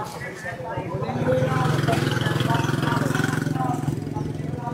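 A motorbike engine runs close by.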